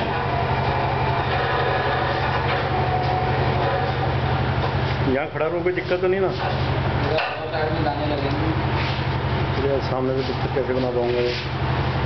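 An electric motor hums as it drives a wheat puffing machine.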